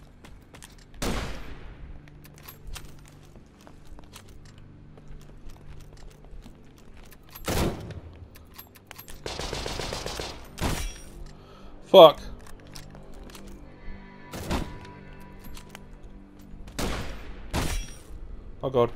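Gunshots bang loudly, one at a time, with short echoing tails.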